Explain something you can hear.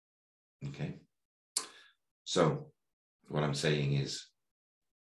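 A middle-aged man speaks calmly into a microphone over an online call.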